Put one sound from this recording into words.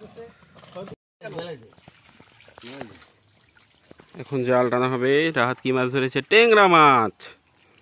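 Feet splash and squelch in wet mud.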